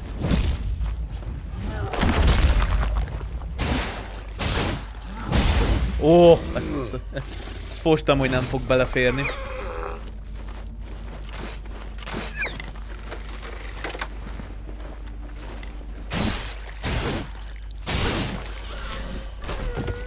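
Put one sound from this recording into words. Sword blows strike and clang sharply in a fight.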